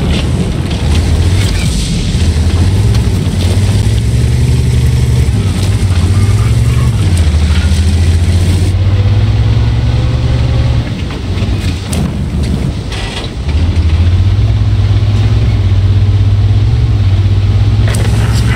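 A heavy tank engine rumbles and drones steadily.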